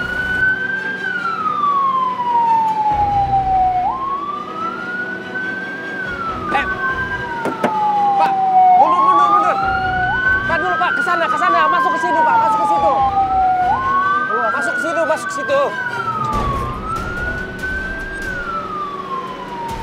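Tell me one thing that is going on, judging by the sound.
A siren wails nearby, rising and falling over and over.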